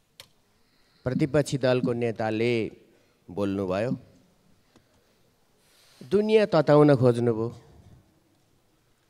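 An elderly man speaks firmly into a microphone in short bursts.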